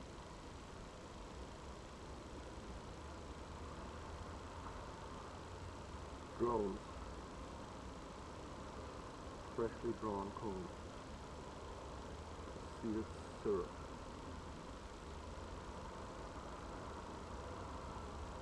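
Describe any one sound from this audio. Bees buzz softly in a steady drone.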